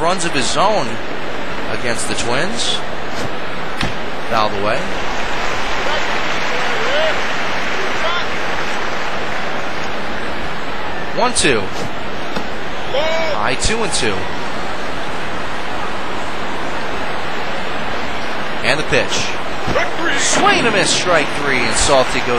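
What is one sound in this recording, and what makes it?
A large crowd murmurs and cheers steadily.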